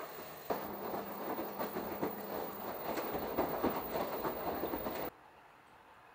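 A washing machine drum turns, sloshing water and tumbling laundry.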